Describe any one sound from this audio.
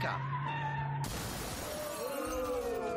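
A vehicle smashes through a shop front with a loud crash.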